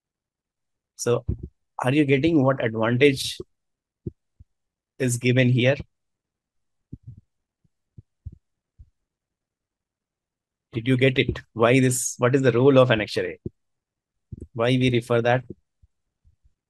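A man speaks calmly into a close microphone, in bursts with pauses.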